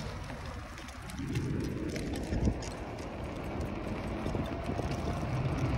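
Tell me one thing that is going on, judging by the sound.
Wind rumbles and buffets outdoors, growing stronger.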